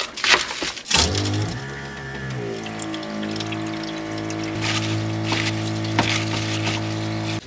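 Water runs steadily from a tap into a metal sink.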